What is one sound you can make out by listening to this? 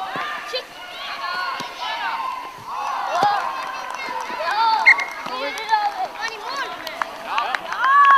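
Young children shout and call out excitedly outdoors.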